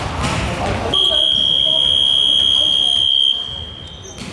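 A scoreboard buzzer sounds loudly and steadily.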